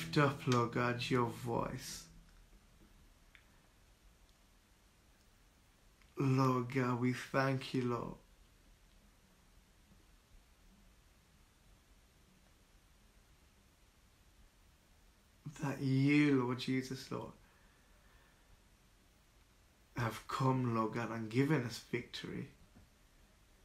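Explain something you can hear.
A man speaks calmly, close to the microphone, in short bursts.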